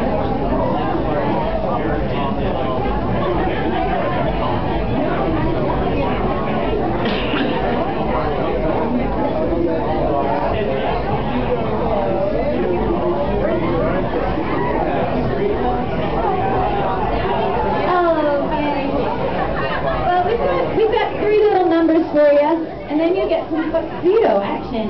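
A double bass plays.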